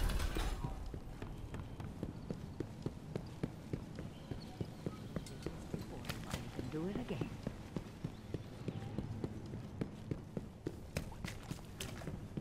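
Footsteps run quickly and steadily over a hard floor.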